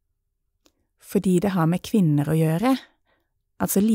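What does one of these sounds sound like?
A second woman speaks calmly close by.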